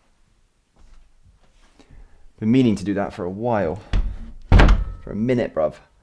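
Closet doors close with a thud.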